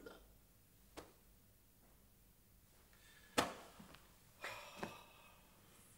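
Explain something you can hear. Objects knock sharply nearby.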